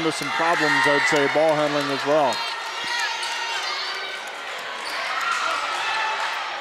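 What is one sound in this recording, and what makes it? A crowd cheers and murmurs steadily.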